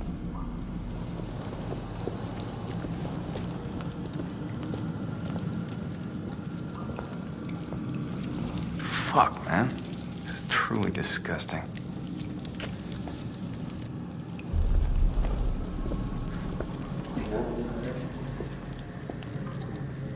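A burning torch crackles and flickers.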